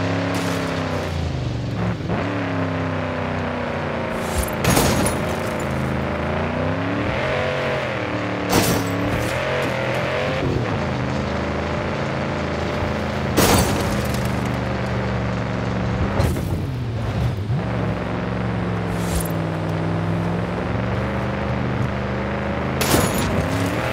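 Tyres churn through loose sand.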